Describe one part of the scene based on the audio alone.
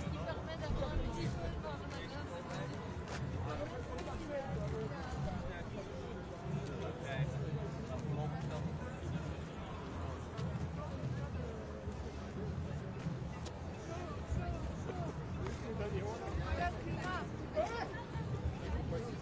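A crowd of people chatters and talks outdoors nearby.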